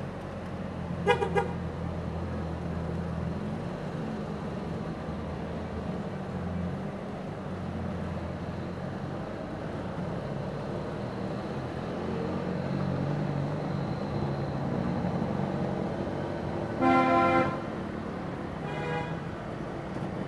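A car horn honks in short bursts.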